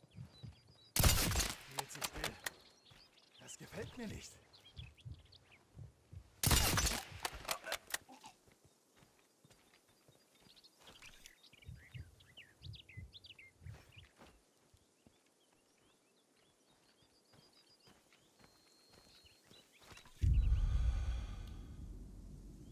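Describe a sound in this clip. A rifle fires loud single shots that echo away.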